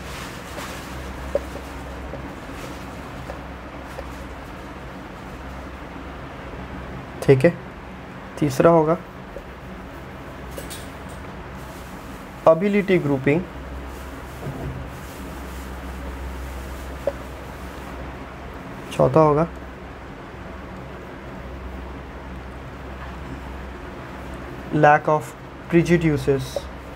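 A marker squeaks and scrapes on a whiteboard.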